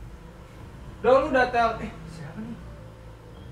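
A young man speaks up sharply nearby.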